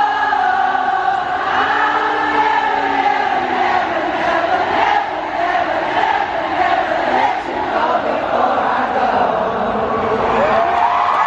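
A woman sings into a microphone through loud speakers in a huge echoing arena.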